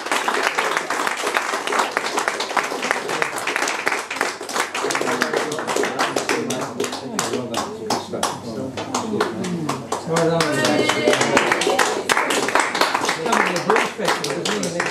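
An accordion plays a lively tune.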